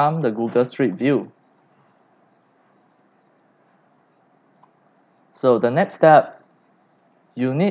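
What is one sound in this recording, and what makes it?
A man speaks calmly into a microphone, in short phrases with pauses.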